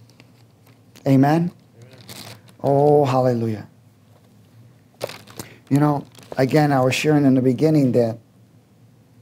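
A man speaks calmly into a microphone, in pauses.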